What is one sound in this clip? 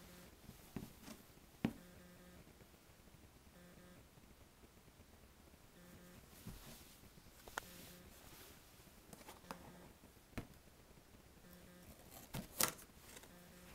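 A cardboard box bumps and rustles as it is handled.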